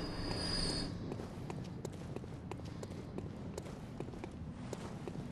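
Footsteps tap on stone.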